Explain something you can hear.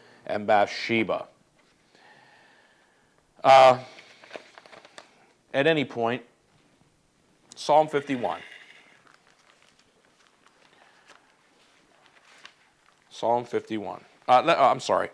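A middle-aged man speaks calmly and closely through a clip-on microphone, with pauses.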